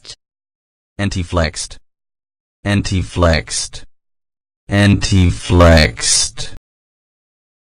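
A man says a single word clearly through a loudspeaker, several times over.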